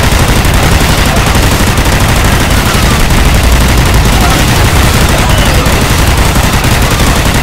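Explosions roar and rumble nearby.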